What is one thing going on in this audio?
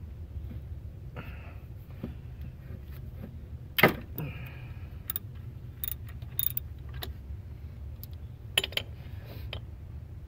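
Plastic engine parts click and knock.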